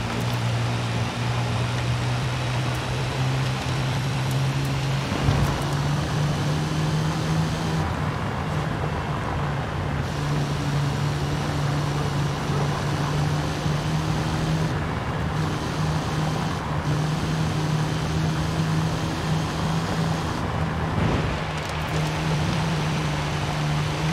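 Tyres crunch and rumble over a rough dirt road.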